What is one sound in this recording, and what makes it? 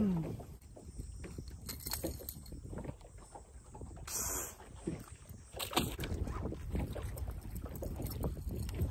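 Wind rumbles steadily outdoors on open water.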